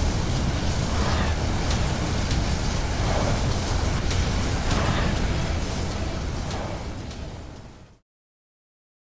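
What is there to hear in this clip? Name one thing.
A deep rumbling hum of a capsule rising through water slowly fades away.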